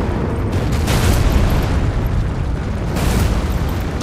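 A heavy weapon whooshes through the air.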